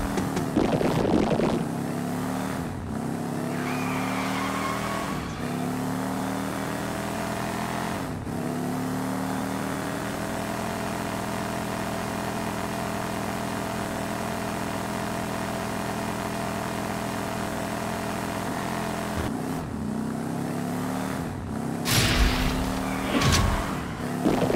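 A game car's engine hums as it races.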